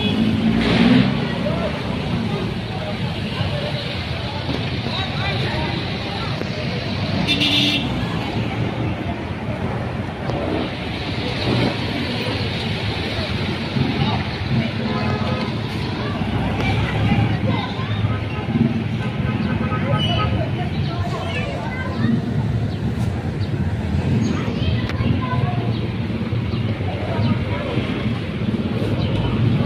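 A crowd of people talks on a busy street outdoors.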